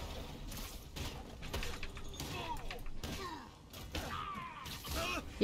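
Heavy metallic blows thud and clank in a fight.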